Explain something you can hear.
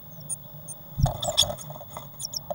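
A second blue tit lands with a knock at the entrance hole of a wooden nest box.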